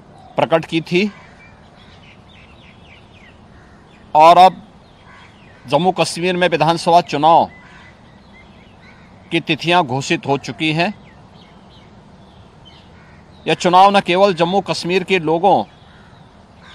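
A middle-aged man speaks calmly in short bursts, close to a microphone.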